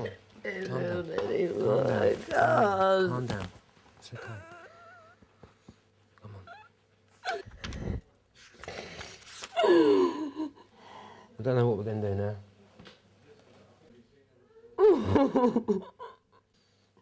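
A man speaks in a low, consoling voice close by.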